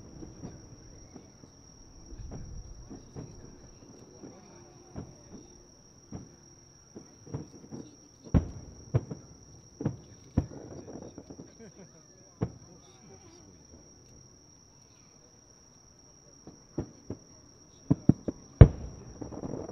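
Fireworks burst with loud booms that echo far off.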